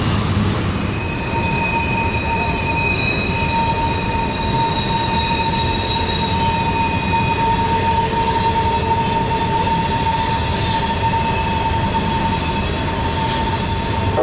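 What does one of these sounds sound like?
Train wheels squeal on the rails with a steady high whine.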